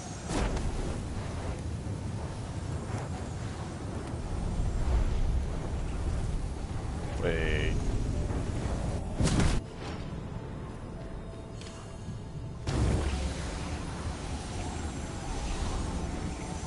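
Flames crackle and hiss steadily.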